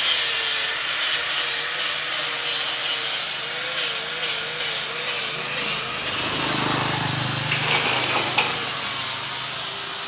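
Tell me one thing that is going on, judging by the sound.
Pruning shears snip at leafy branches.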